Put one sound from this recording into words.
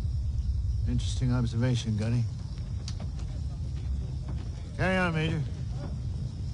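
An older man answers in a calm, dry voice.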